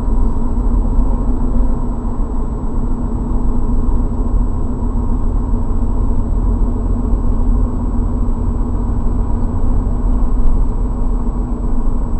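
A vehicle's engine hums steadily from inside while driving.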